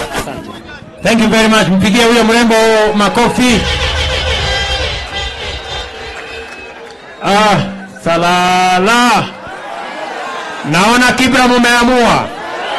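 A young boy shouts out energetically through a microphone and loudspeakers.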